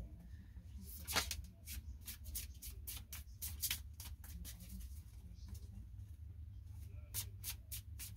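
Cards riffle and slap together as a deck is shuffled by hand.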